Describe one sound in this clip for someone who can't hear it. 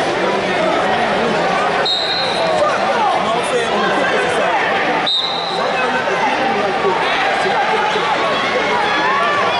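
A large crowd murmurs and calls out in an echoing arena.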